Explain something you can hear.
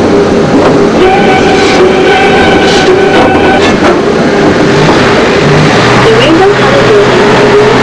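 A small bus engine hums as the bus drives along the road.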